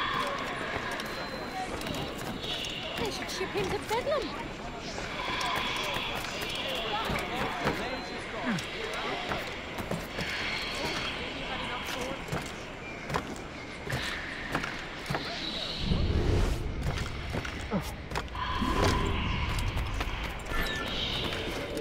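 Footsteps thud and scrape on wood and stone.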